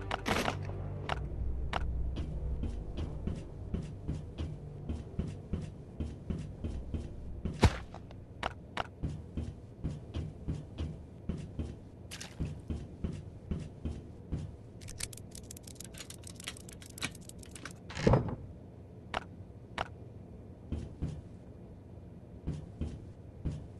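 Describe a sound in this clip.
Footsteps tread steadily across a hard floor.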